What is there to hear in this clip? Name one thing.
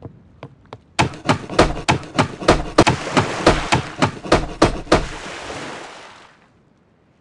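A hammer bangs rapidly on wooden planks.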